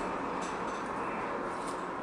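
A spoon stirs wetly through chopped tomatoes.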